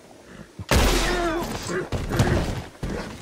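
A horse whinnies shrilly.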